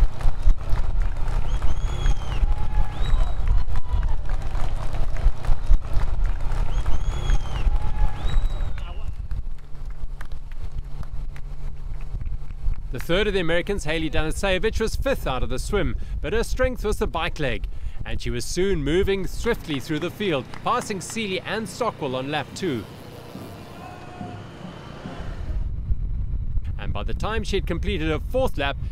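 A racing bicycle whirs along the road.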